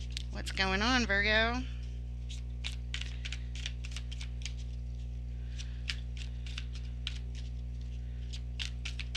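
Playing cards riffle and flick softly as they are shuffled by hand.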